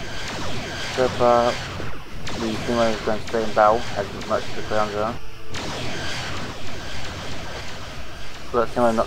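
Laser weapons fire in short, buzzing bursts.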